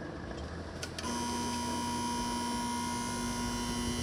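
A crossing barrier arm whirs as it lowers.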